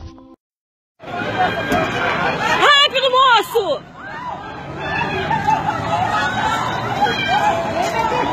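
A crowd of adult men and women shout and talk excitedly outdoors.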